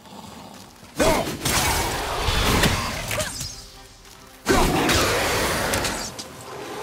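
An axe whooshes and strikes with heavy impacts.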